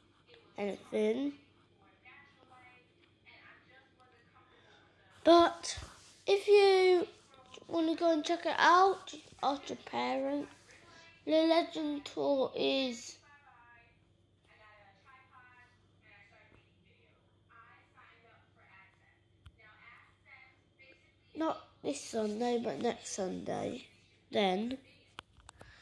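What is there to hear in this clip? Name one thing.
A young boy talks close to a phone microphone, with animation.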